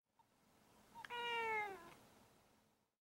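A cat meows once with a falling cry.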